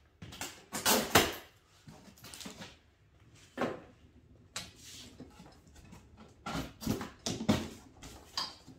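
A large cardboard box knocks and scrapes as it is handled.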